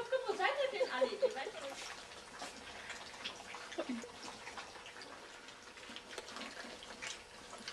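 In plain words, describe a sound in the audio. Puppies lap and chew food from a metal bowl.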